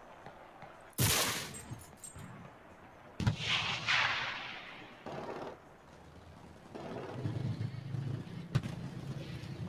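A rifle fires loud sharp shots with echoing rolls.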